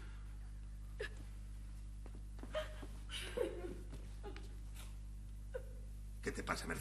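A young woman sobs quietly.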